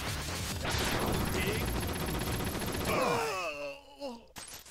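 Loud video game music plays.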